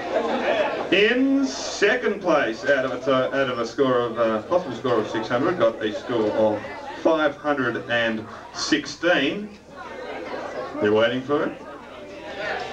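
A man reads out into a microphone through loudspeakers.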